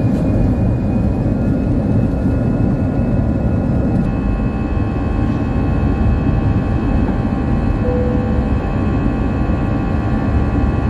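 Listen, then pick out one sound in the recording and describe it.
Jet engines roar loudly and steadily as an airliner takes off.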